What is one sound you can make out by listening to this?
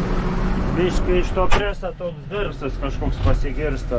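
A tractor cab door clunks shut.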